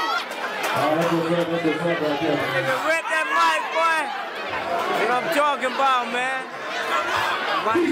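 A young man talks loudly and excitedly close by.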